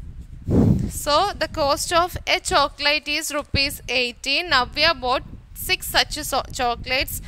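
A young woman speaks clearly into a close microphone, explaining steadily.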